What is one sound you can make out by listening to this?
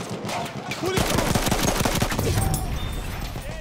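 A machine gun fires a rapid burst up close.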